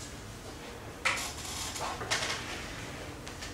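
An eraser rubs across a chalkboard.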